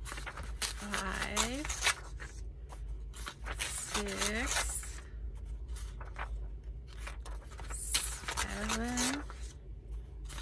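Paper pages rustle and flutter as they are leafed through by hand.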